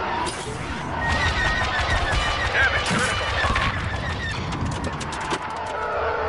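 Laser cannons fire in rapid bursts of sharp zaps.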